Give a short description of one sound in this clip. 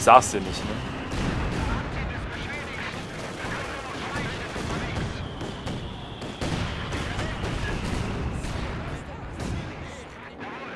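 Gunfire and blasts rumble on throughout.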